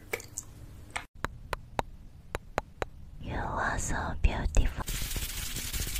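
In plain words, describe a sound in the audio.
A young woman makes soft mouth sounds close to a microphone.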